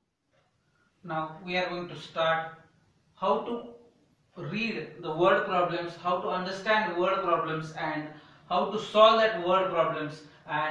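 A man speaks calmly and clearly, explaining, close by.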